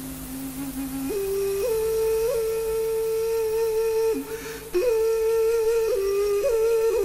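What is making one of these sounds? A woman plays a slow, breathy melody on a small wind instrument.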